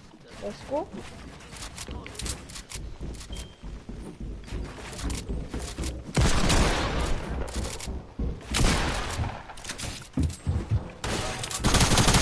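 Building pieces clatter and snap into place in quick bursts.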